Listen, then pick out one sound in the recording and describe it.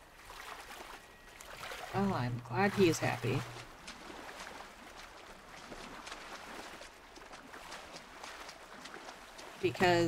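Water splashes softly as someone swims.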